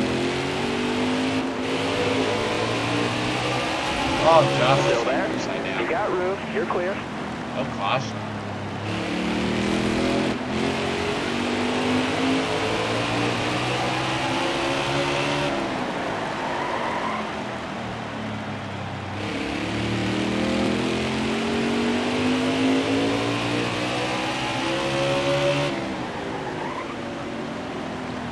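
A racing car engine roars steadily, its pitch rising and falling as it speeds along.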